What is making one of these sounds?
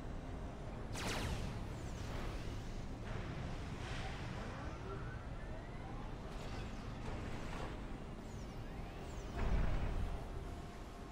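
Loud explosions boom now and then.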